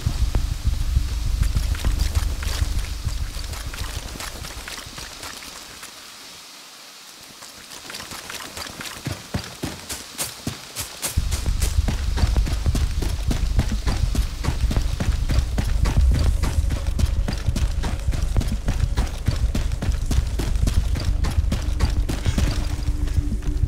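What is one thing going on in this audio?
Boots crunch quickly over dry ground and leaves.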